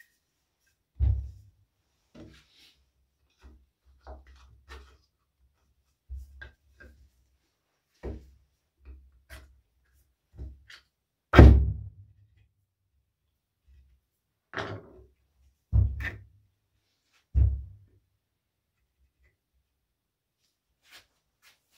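A hollow wooden vessel is knocked and bumped by hand.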